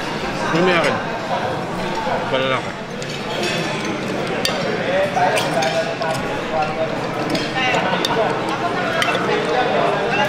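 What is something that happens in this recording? Metal cutlery clinks against a plate.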